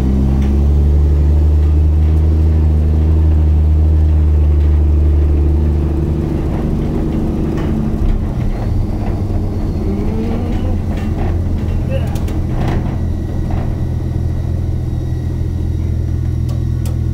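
A diesel engine rumbles loudly as a vehicle drives over rough ground.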